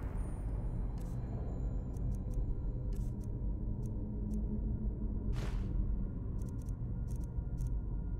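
Short soft clicks tick now and then.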